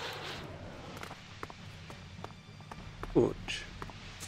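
Footsteps tap on hard ground at a walking pace.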